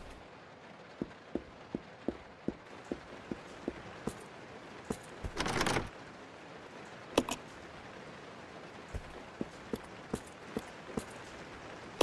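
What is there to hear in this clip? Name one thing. Footsteps tap on a wooden floor at an even pace.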